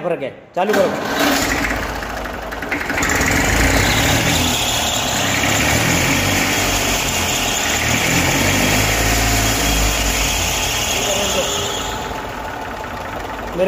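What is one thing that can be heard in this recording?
A diesel engine idles with a steady rattling rumble close by.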